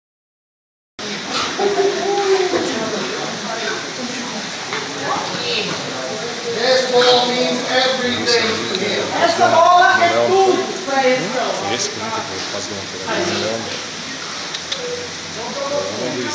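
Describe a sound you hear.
Several men talk and murmur in a room with a slight echo.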